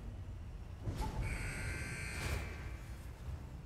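A heavy elevator door slides open with a rattling hiss.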